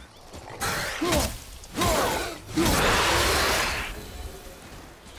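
A heavy axe strikes with sharp thuds.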